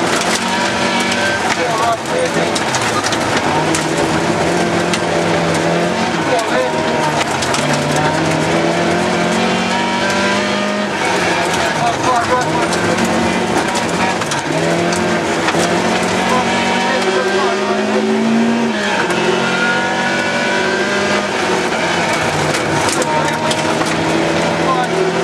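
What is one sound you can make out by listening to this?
Gravel crackles and pings under the tyres and against the car's underside.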